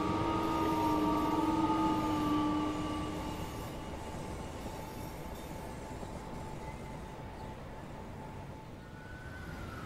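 An electric train rumbles along the tracks.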